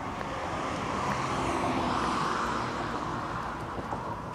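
A car drives slowly past nearby.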